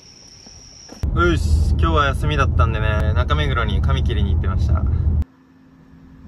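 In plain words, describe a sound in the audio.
A young man talks with animation close by.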